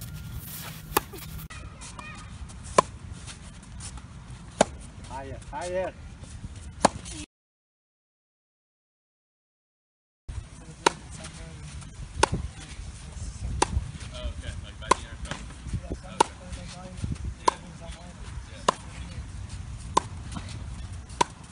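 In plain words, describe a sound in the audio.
A tennis racket strikes a tennis ball outdoors.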